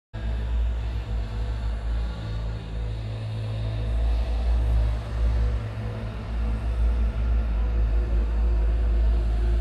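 Loud electronic music with a heavy, booming bass pounds through large outdoor speakers.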